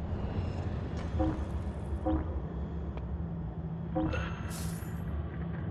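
Soft menu clicks and chimes sound as items are chosen.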